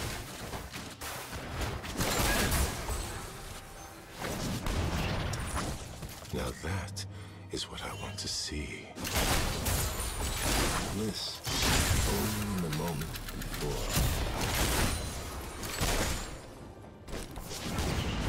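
Game spell effects whoosh and crackle as characters fight.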